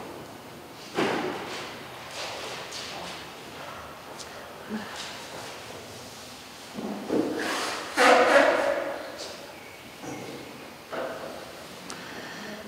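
A man reads out quietly into a microphone.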